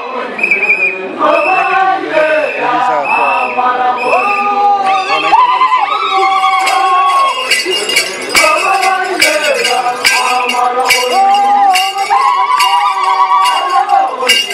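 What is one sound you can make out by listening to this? A group of young women and men sing together in chorus outdoors.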